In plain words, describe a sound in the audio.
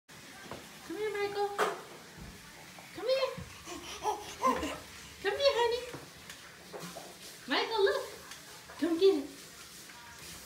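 A baby babbles and squeals in short bursts nearby.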